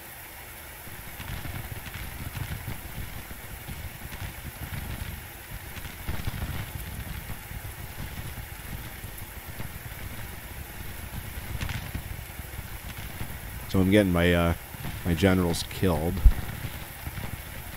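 Gunfire rumbles and crackles in the distance.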